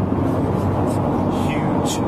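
A man speaks close up.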